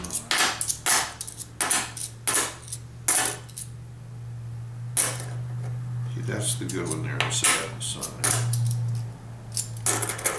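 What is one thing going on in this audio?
Coins click down onto a wooden table.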